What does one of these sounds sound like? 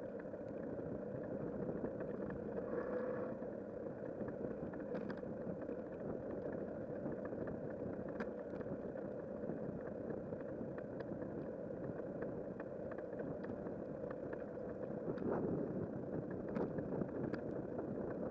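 Wind rumbles steadily against a microphone outdoors.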